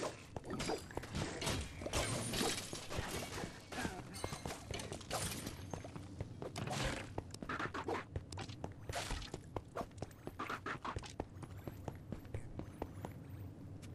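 Game combat effects clatter with sharp hits.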